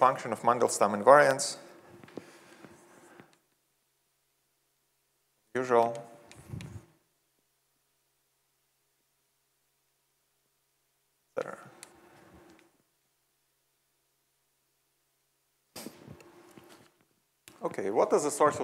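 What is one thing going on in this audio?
A young man speaks calmly, in short bursts with long pauses.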